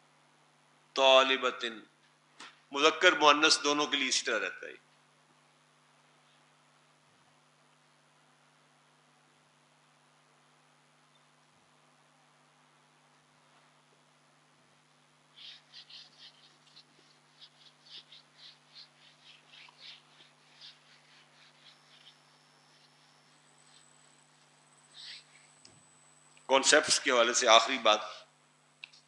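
An elderly man speaks calmly through a clip-on microphone.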